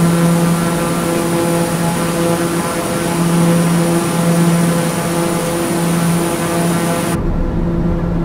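A propeller engine drones steadily, heard loudly from outside the aircraft.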